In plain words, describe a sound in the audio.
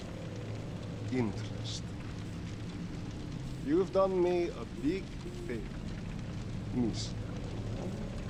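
A man speaks slowly and menacingly, close by.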